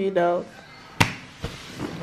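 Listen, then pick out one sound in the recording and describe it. A playing card slaps down on a bed.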